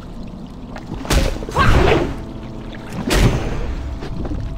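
Magic spells burst with loud whooshing blasts.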